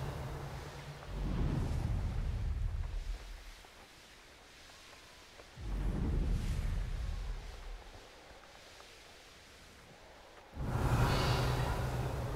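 Wings flap in heavy gusts.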